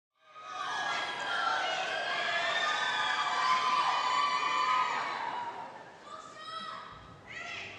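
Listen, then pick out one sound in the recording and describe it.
A large choir sings together in an echoing hall.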